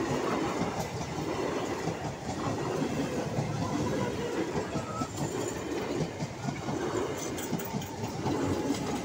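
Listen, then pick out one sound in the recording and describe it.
An electric suburban train rumbles past at speed.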